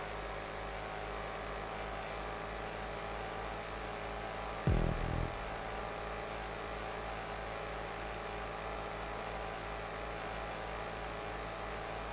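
An SUV engine drones at full throttle at top speed.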